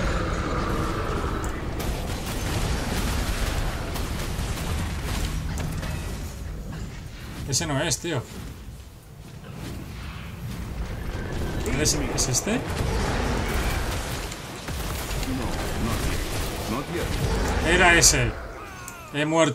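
Fiery blasts and spell effects roar and crackle in a video game.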